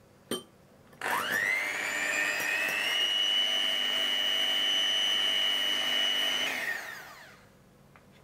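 An electric hand mixer whirs loudly, rising in pitch as it speeds up and winding down as it stops.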